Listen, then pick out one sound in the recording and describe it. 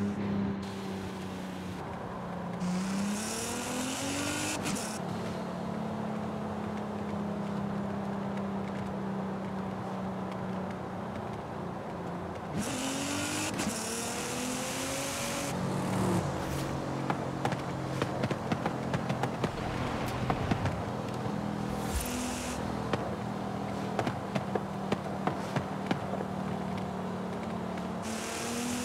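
A sports car engine roars steadily, revving up and down through gear changes.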